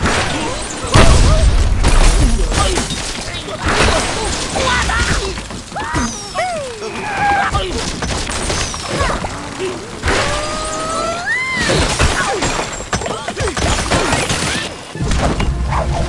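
Wooden blocks crash and tumble down.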